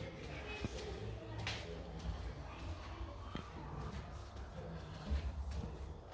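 Footsteps climb stairs indoors.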